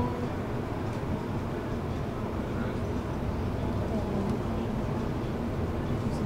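A suitcase rolls along on its wheels.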